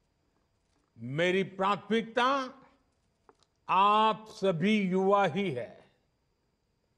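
An elderly man speaks calmly into a microphone in two short phrases.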